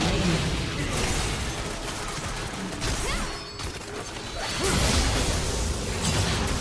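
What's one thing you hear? Game spell effects and hits clash in a busy battle.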